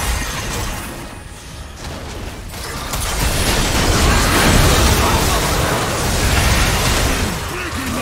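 Spells and weapons burst and clash in a noisy game fight.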